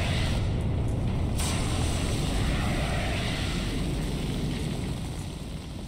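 A fire extinguisher sprays with a loud, steady hiss.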